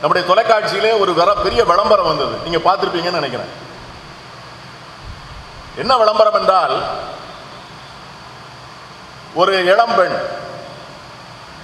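A middle-aged man speaks with animation into a microphone, echoing in a large hall.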